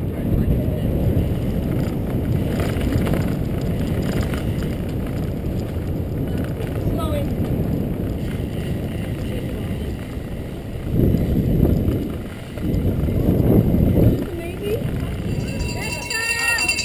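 Wind buffets a microphone on a moving bicycle.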